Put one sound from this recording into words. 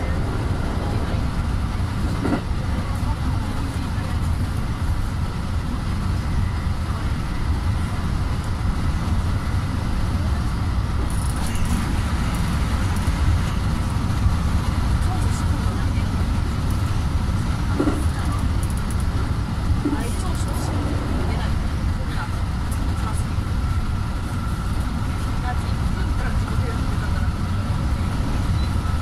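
Wheels click and clatter over rail joints.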